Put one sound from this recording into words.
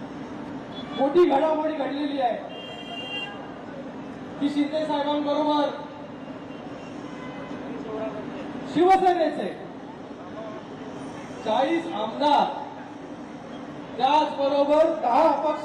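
A crowd chants slogans back in unison.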